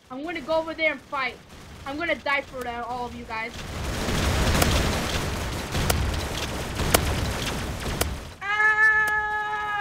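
A shotgun fires repeatedly.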